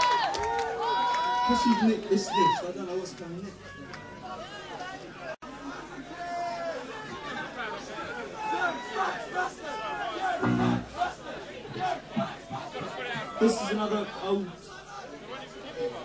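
Drums are played hard.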